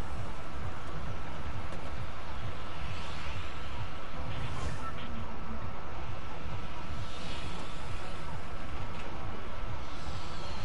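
Wind roars steadily past a flying balloon.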